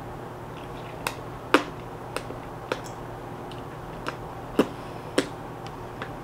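A small cardboard box clicks and taps as hands handle it.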